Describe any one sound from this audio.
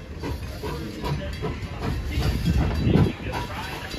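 Steam hisses from a locomotive's cylinders.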